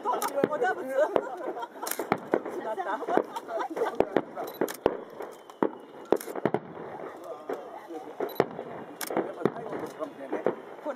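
Fireworks bang and crackle in the distance.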